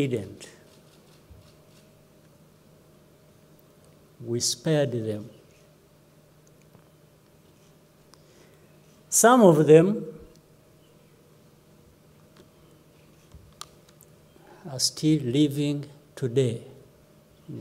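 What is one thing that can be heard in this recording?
A middle-aged man speaks slowly and calmly into a microphone, with long pauses.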